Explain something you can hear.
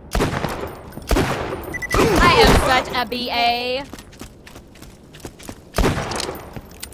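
Pistol shots ring out in a video game.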